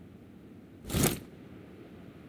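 A single rifle shot cracks.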